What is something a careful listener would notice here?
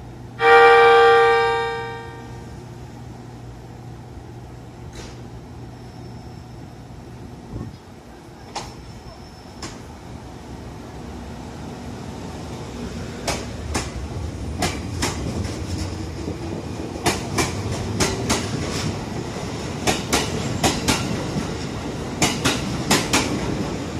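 A train rolls slowly past, rumbling.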